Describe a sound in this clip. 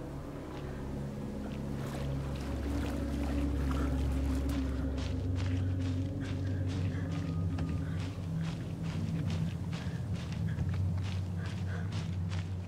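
Footsteps crunch slowly over twigs and leaves on the forest floor.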